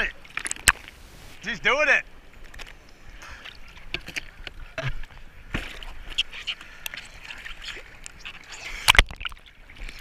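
Hands slap and paddle in the water.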